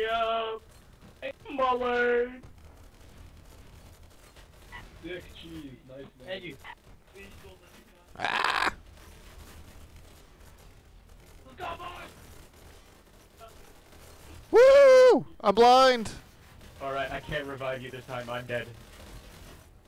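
A man talks with animation into a close microphone, now and then shouting.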